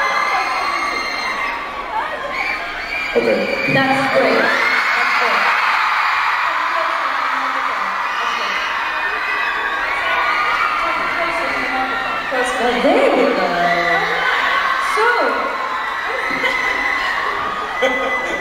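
A large crowd screams and cheers in a large arena.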